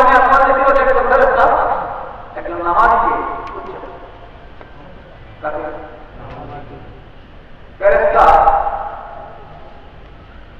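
A man chants melodiously into a microphone, echoing in a large space.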